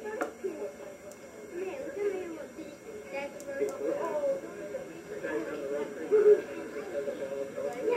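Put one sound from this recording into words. Young children chatter and call out nearby.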